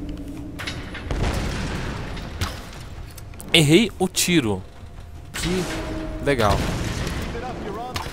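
Explosions boom and crackle with fire.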